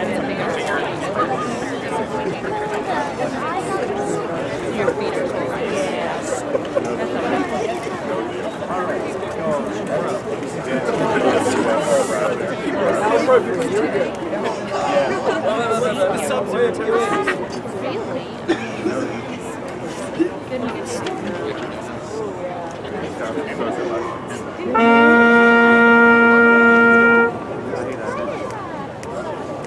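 Young men and women chatter and murmur outdoors.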